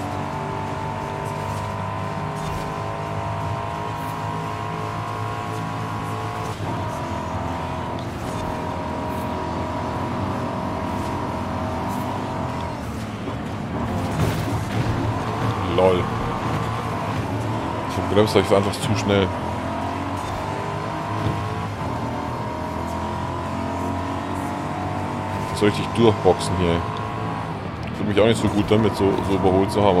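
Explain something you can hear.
A racing car engine roars at high revs, rising and falling as gears change.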